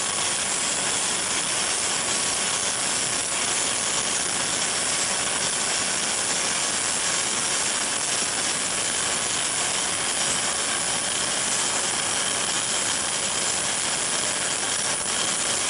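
Jet engines roar steadily as a large aircraft taxis close by.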